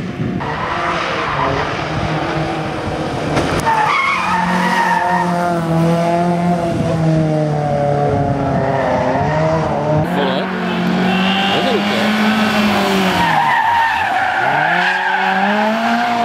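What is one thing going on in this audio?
Car tyres skid and scrabble on loose gravel.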